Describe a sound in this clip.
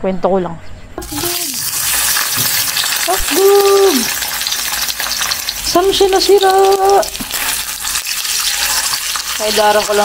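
Sausages sizzle loudly in hot oil.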